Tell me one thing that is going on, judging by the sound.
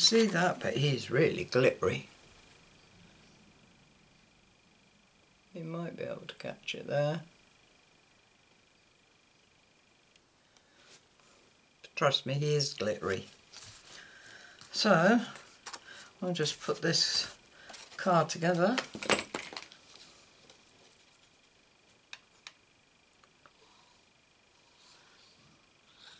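Stiff paper rustles softly as it is handled.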